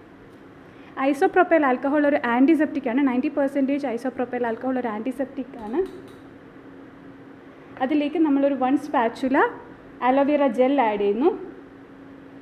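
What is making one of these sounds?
A woman speaks calmly close by, pausing now and then.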